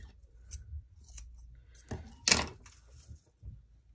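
Fabric lace drops softly onto a mat.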